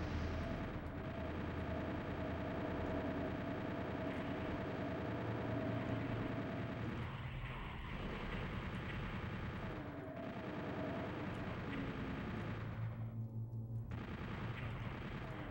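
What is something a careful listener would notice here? Game monsters growl and roar.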